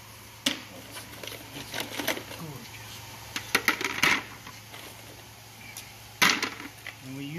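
Plastic buckets knock and clatter.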